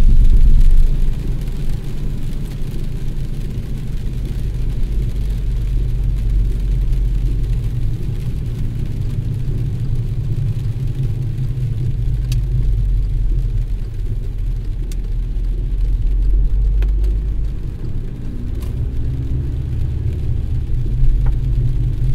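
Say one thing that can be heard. A windshield wiper thumps across the glass now and then.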